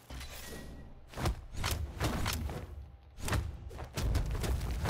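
Cartoon hits and whooshes from a fighting game sound in quick bursts.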